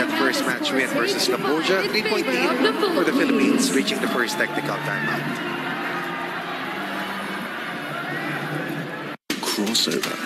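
A large crowd cheers and shouts loudly in a big echoing arena.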